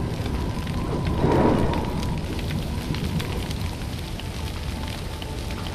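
A bonfire crackles and pops steadily.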